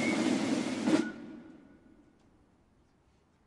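A final drum stroke echoes and fades away outdoors.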